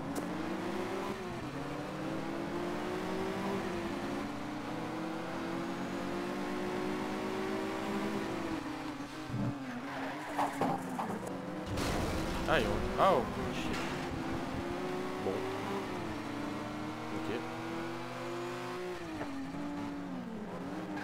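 A car engine roars loudly, its pitch rising and dropping as gears shift.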